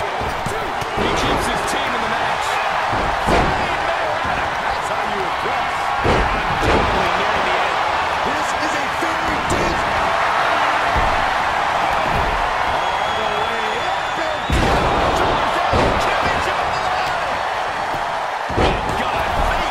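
Heavy thuds sound as wrestlers slam onto the ring mat.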